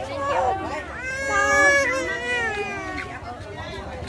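A baby cries loudly close by.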